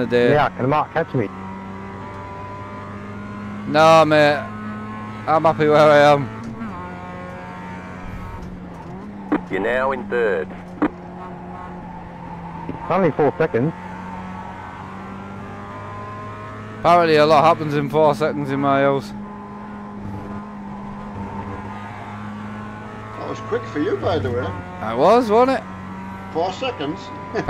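A race car engine hums steadily at high revs.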